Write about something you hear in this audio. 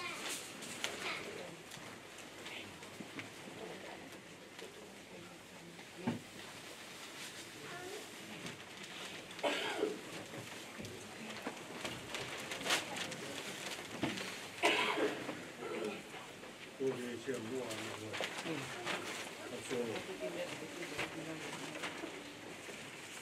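Woven grass skirts rustle as people walk.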